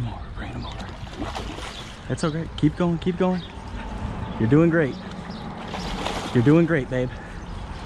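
A large fish thrashes and splashes at the water's surface.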